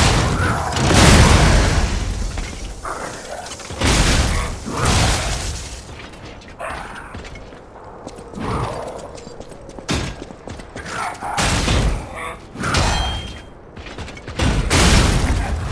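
Heavy metal blows clang and crash with fiery explosions.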